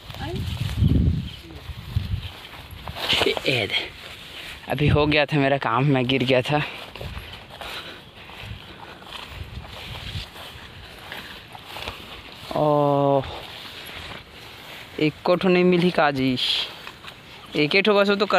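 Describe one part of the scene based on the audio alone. Footsteps rustle through grass and leafy plants.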